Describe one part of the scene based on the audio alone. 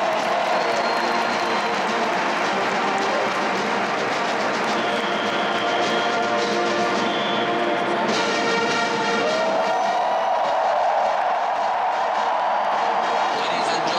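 A stadium crowd murmurs and cheers in the background.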